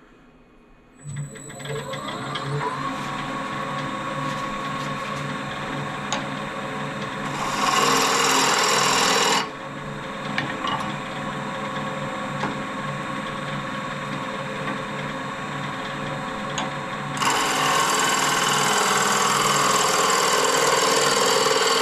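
A wood lathe whirs steadily.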